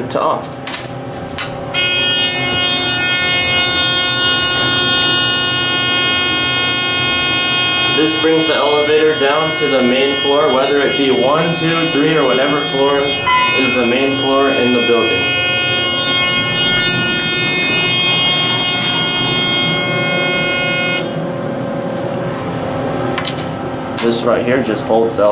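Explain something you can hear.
Keys jingle and click in an elevator key switch.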